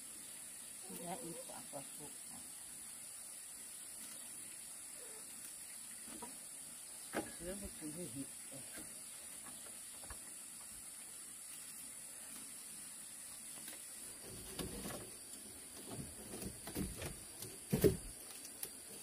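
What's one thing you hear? Bamboo poles knock and rattle as they are tied together.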